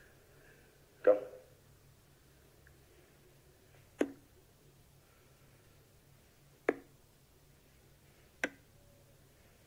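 Darts thud into a dartboard one at a time.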